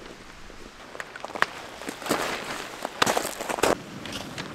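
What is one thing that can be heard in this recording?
Tent pegs and cords clink as a tent is staked down.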